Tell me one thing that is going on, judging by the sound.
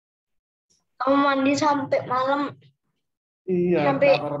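A young person speaks calmly over an online call.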